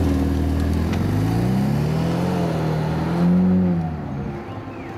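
A sports car engine revs up loudly, rising and falling in pitch.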